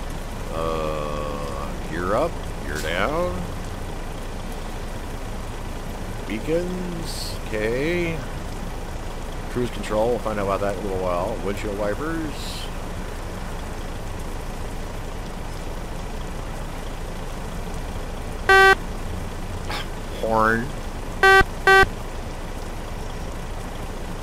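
A truck engine idles with a steady low rumble.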